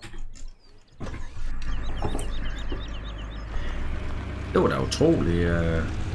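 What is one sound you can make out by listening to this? A pickup truck's engine starts and idles with a low, steady rumble.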